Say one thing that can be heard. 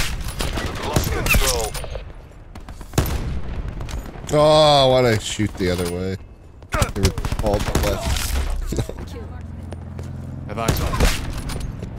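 A sniper rifle fires loud sharp shots.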